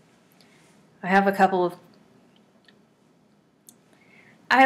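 A woman speaks calmly into a microphone close by.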